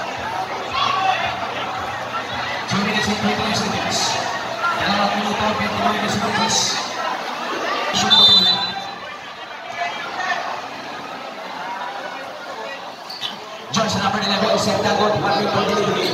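A large crowd chatters and cheers loudly in a big echoing hall.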